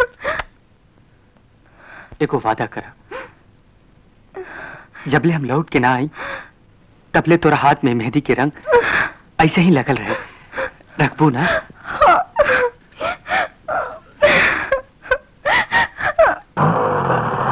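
A woman speaks emotionally, close by.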